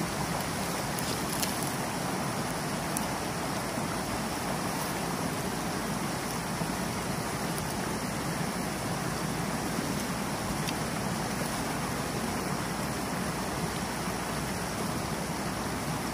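Water rushes and splashes steadily over a small weir.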